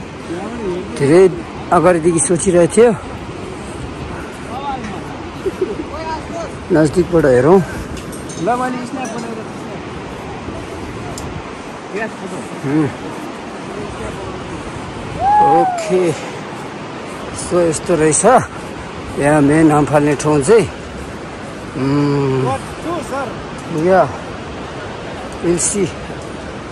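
A young man talks loudly close by, outdoors.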